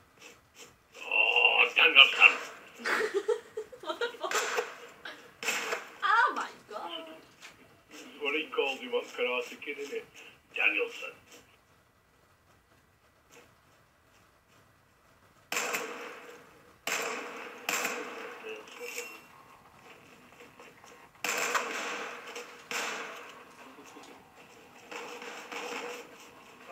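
Video game gunfire plays through television speakers in bursts.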